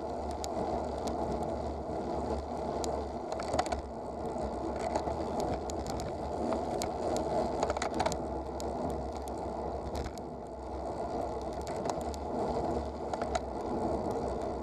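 Wind rumbles steadily across a microphone.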